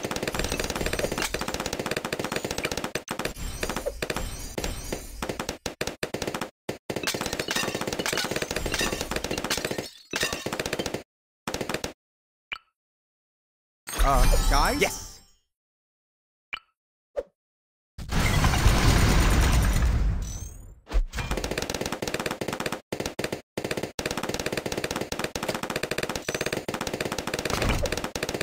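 Balloons pop in rapid bursts amid busy game sound effects.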